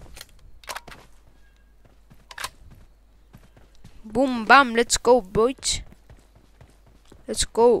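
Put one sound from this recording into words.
Footsteps patter quickly on a stone walkway.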